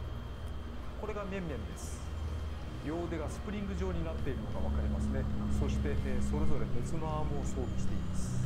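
A young man talks calmly, close to a microphone.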